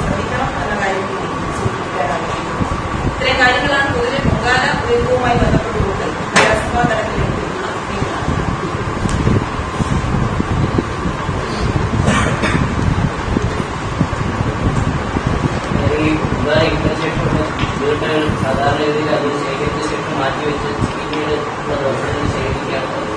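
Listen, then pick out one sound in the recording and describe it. A young woman speaks calmly into microphones.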